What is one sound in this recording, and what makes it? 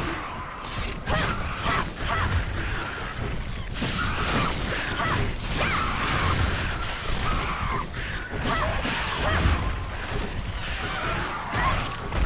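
A blade slashes and strikes flesh.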